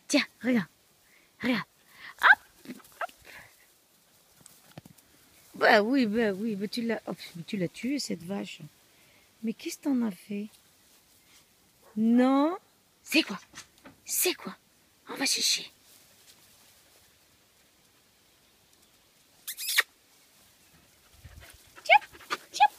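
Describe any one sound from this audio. A husky howls and yowls playfully, close by.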